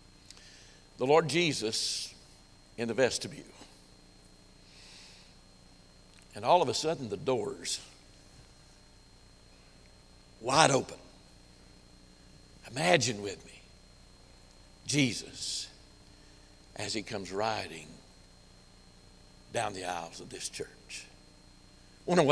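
An elderly man speaks with animation through a microphone, in short bursts with pauses.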